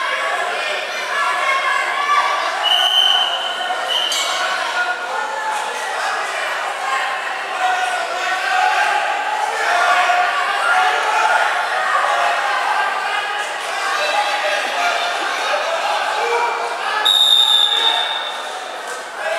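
A crowd of children and adults chatters and calls out in a large echoing hall.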